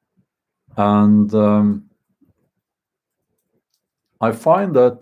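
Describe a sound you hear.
A man speaks close to the microphone in a deep, drawn-out voice.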